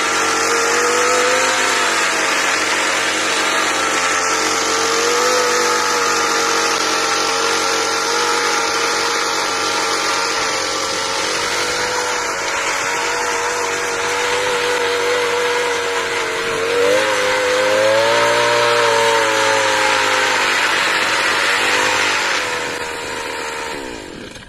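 The trimmer line whips and rasps through weeds and dry soil.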